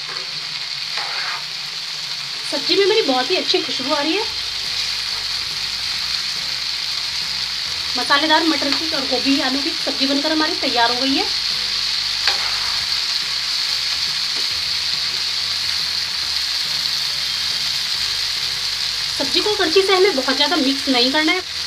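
A spoon scrapes and stirs food in a metal pan.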